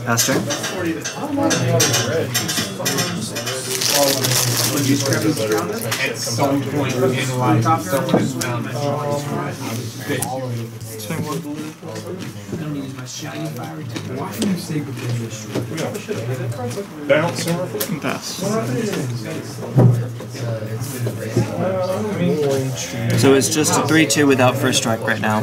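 Playing cards slide and tap softly on a table mat.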